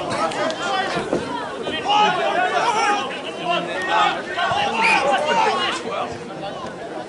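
Spectators cheer and shout loudly outdoors.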